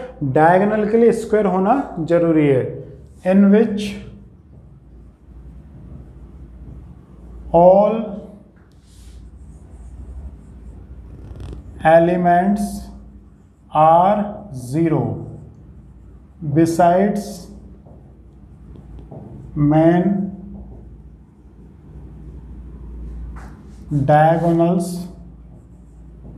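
A man speaks calmly in short phrases, with pauses.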